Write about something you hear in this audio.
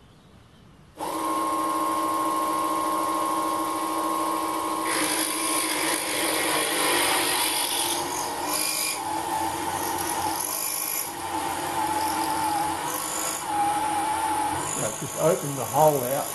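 An electric motor starts and whirs steadily with a high hum.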